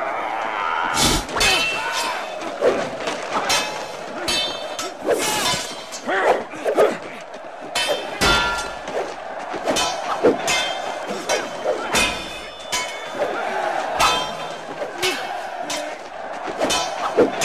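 Metal swords clash and ring sharply again and again.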